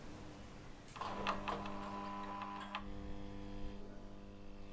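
Ceiling lights click on one after another.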